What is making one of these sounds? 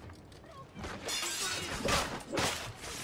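Steel blades clash and ring sharply.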